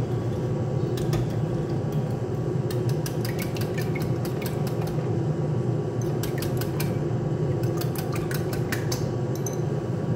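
A wire whisk clicks rapidly against a bowl as eggs are beaten.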